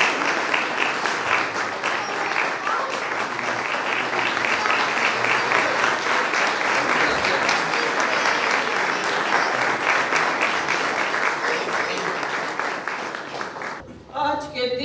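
A crowd applauds and claps steadily.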